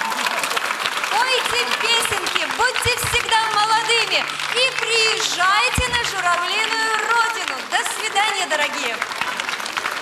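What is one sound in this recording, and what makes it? A woman speaks with animation over a loudspeaker.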